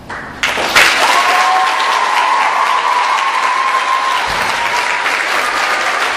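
Audience members cheer and whistle.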